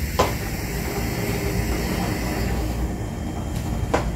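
A plastic dripper knocks lightly against a glass carafe as it is lifted off.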